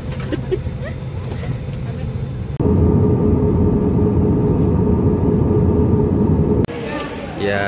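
A low steady drone fills an airliner cabin.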